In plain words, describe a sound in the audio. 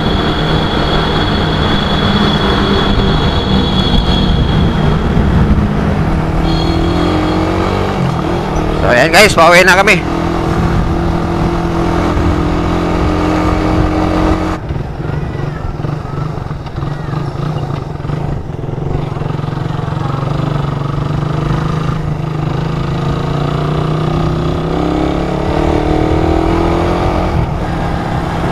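A motorcycle engine hums steadily as it rides along.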